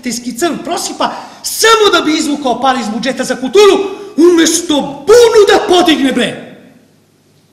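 A man speaks loudly and with animation on a stage.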